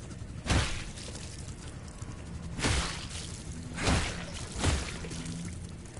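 Heavy boots stomp on a body with loud wet thuds.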